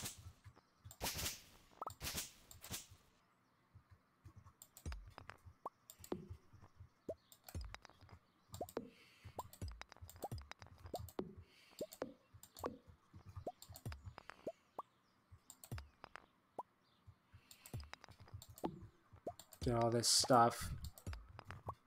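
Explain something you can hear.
Short game chimes and pops sound as items are picked up.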